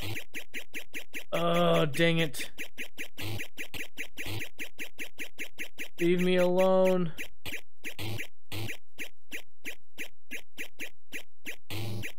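Retro arcade game music beeps in a fast, steady rhythm.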